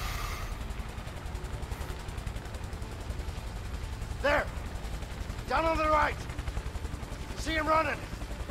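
A helicopter's rotor throbs steadily close by.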